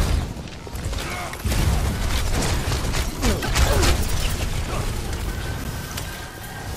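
Energy guns fire in rapid bursts with zapping blasts.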